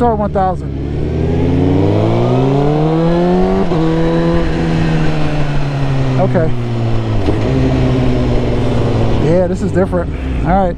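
A motorcycle engine roars and revs up through the gears close by.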